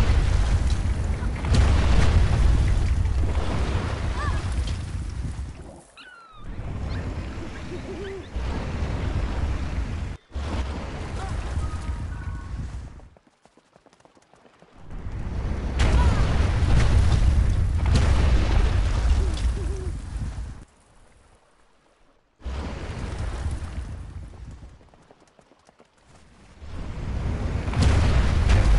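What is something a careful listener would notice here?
Strong wind roars and gusts.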